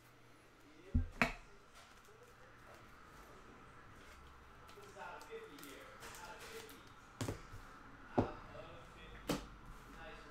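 Cards tap and click against a table.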